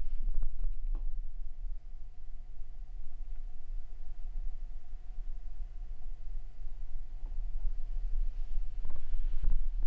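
An electric heater hums faintly and steadily.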